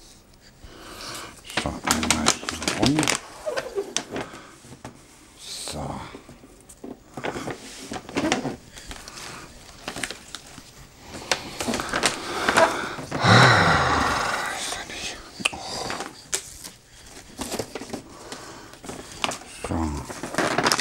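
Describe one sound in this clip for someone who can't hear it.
Wrapping paper crinkles and rustles.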